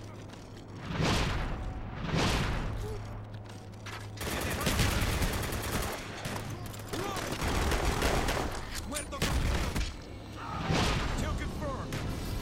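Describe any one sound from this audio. Gunshots ring out in short bursts.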